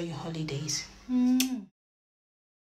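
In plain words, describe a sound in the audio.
A young woman blows a kiss.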